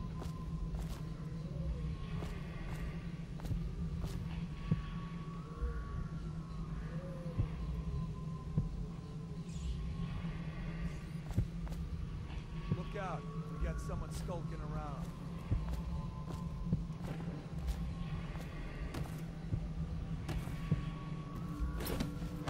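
Footsteps tread on stone at a steady walking pace.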